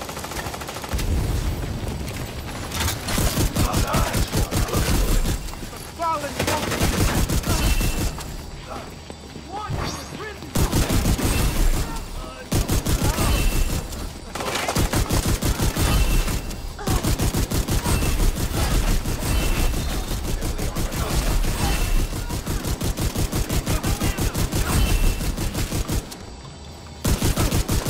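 Rapid automatic gunfire rattles in close bursts.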